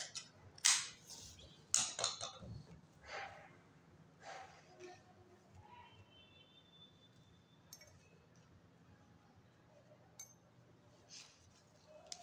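Cloth rustles as hands fold and smooth it.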